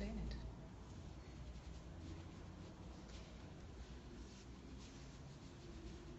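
Fingertips softly brush against a painted wall.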